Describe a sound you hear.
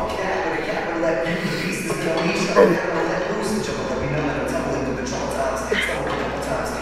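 A young man talks energetically, close to a microphone.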